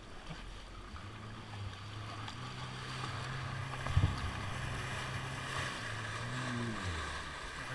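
A personal watercraft engine hums steadily up close.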